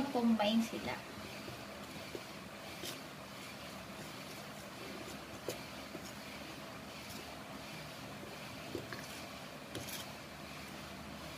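A fork scrapes and taps against a ceramic bowl while mixing flour.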